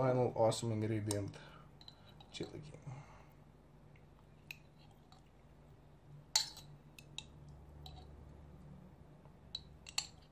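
Glass jars clink against each other.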